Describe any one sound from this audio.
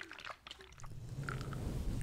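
A soft brush sweeps against a microphone with a muffled rumble.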